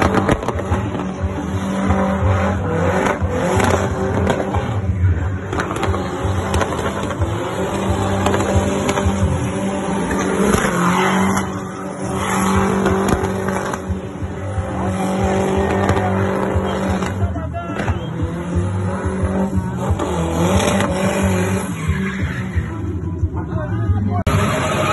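A car engine roars at high revs while drifting.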